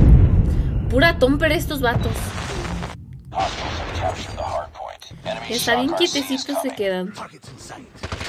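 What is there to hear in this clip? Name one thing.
A young woman talks casually into a headset microphone.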